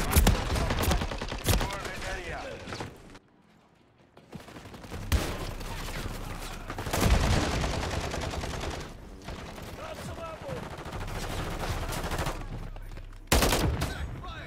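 A rifle fires in sharp bursts.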